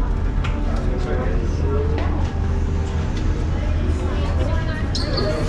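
A crowd of people chatters nearby in an enclosed space.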